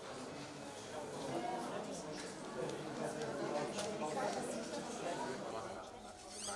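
A young woman talks cheerfully with students.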